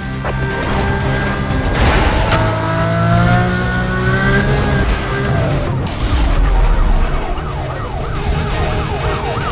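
A sports car engine roars at high revs.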